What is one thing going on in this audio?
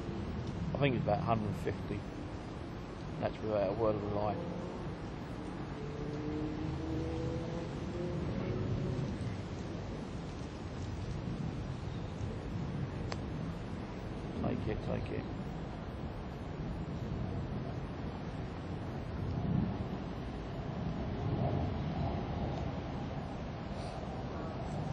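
Wind blows steadily outdoors, rumbling against the microphone.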